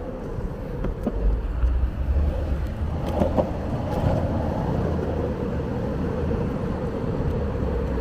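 Skateboard wheels rumble steadily over rough asphalt.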